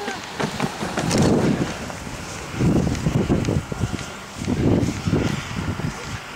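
Wind gusts roar against the microphone outdoors.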